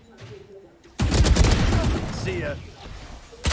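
A video game rifle fires in rapid bursts.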